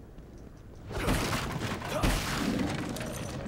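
A wooden crate smashes and splinters.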